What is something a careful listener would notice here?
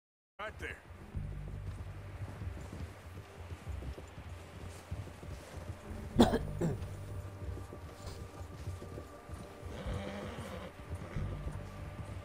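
Wind blows in a snowstorm.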